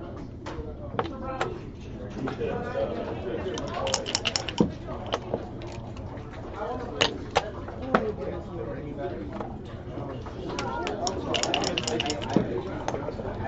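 Game pieces click and clack against a wooden board.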